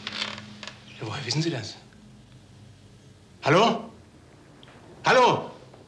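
A man speaks into a telephone in short, tense phrases.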